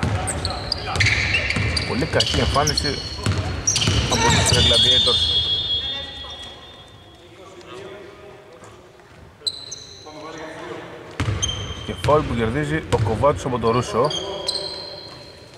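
Sneakers squeak on a hardwood court.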